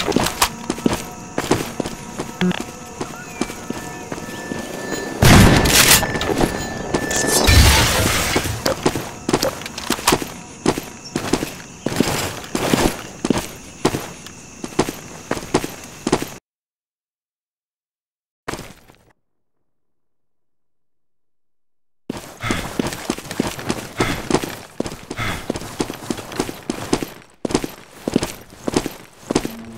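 Footsteps tread steadily over ground and rock.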